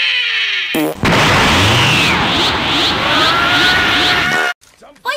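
A burst of magical energy whooshes and crackles.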